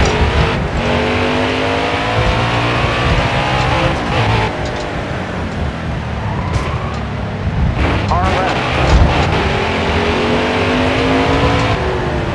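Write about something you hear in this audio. A race car engine roars at high revs, its pitch rising and falling with gear changes.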